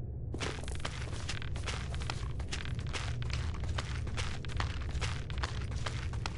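A walking stick taps and scrapes on gravel.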